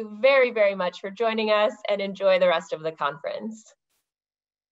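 A young woman speaks cheerfully over an online call.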